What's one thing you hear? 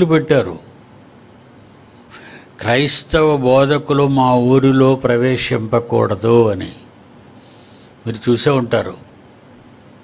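An elderly man speaks emphatically and close into a microphone.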